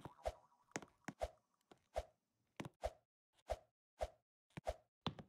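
Game footsteps thump steadily as a character climbs over blocks.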